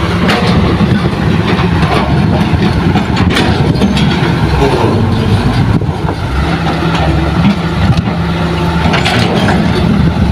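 A dump truck drives slowly over rough ground.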